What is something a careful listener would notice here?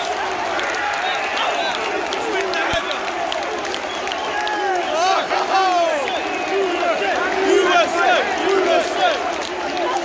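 Fans nearby clap their hands.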